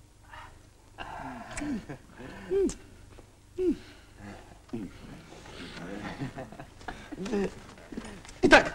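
A man talks animatedly close by.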